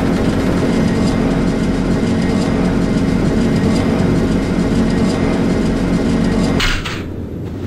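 An elevator hums and rumbles steadily as it moves.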